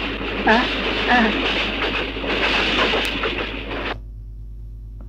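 A train rattles and roars along the tracks.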